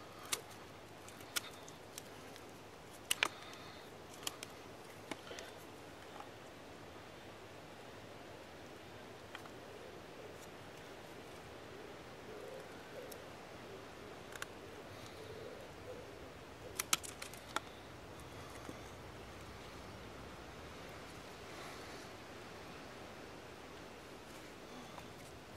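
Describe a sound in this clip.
A knife shaves and scrapes at a wooden stick.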